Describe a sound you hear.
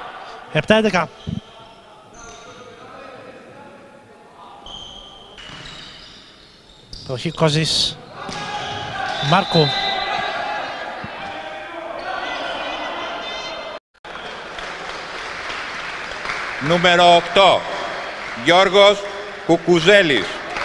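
Men shout loudly in an echoing hall.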